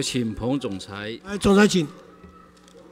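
A man speaks into a microphone in a loud, clear voice, then falls silent.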